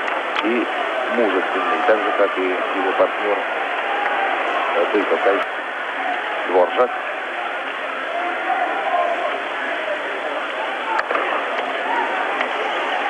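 A crowd murmurs and roars in a large arena.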